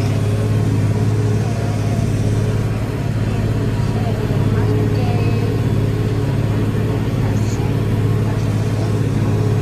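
A tractor engine drones steadily inside its cab.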